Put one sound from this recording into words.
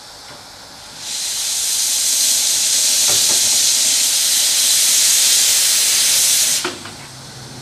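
Steam hisses loudly from a steam locomotive.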